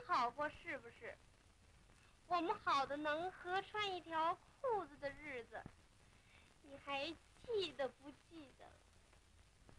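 A young woman speaks softly and teasingly close by.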